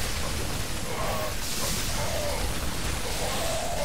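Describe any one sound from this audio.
Laser weapons fire and blast in a battle.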